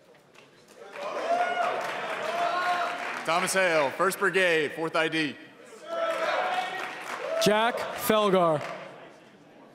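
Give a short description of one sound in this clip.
A young man speaks loudly into a microphone in a large echoing hall.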